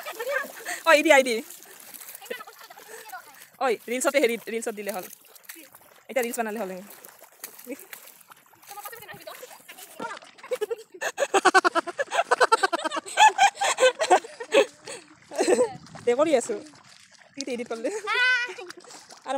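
A young woman talks and laughs with animation nearby.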